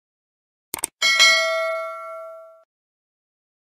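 A bell chimes once and rings out.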